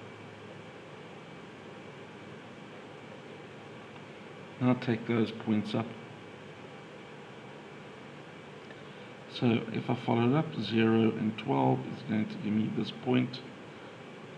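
A pencil scratches across paper.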